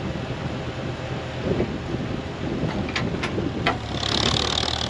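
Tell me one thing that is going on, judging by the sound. A digger bucket scrapes through stony soil.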